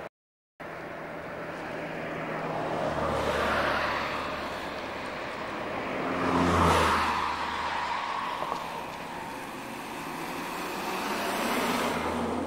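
Wind gusts and rumbles across the microphone outdoors.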